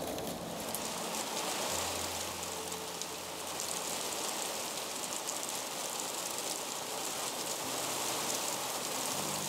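Rain drums on a roof overhead.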